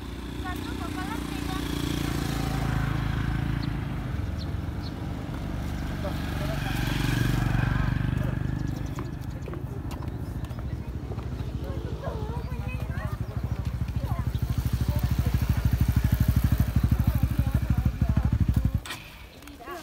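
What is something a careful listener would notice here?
A motorbike engine rumbles steadily up close.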